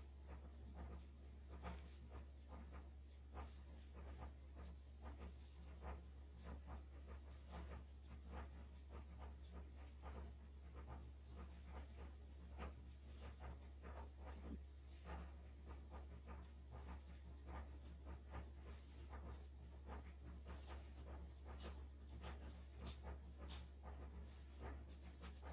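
A paintbrush dabs and taps softly on paper.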